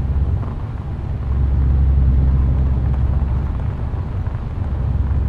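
A truck engine rumbles steadily at a low pitch.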